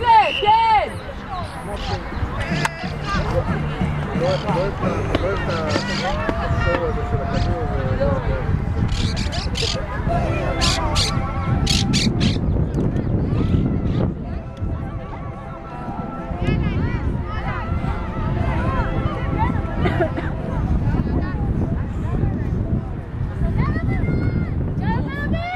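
Young women shout and call out to each other outdoors.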